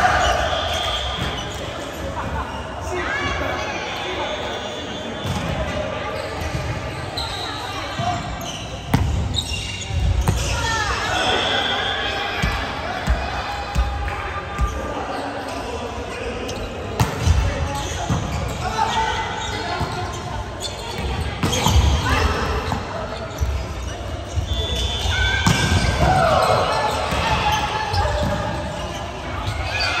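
Young men call out and shout to each other in a large echoing hall.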